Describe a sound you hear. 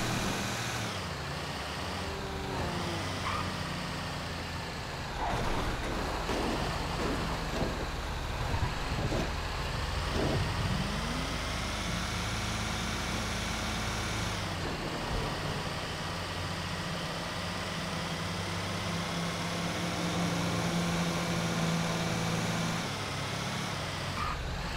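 A heavy truck engine rumbles steadily as it drives along a road.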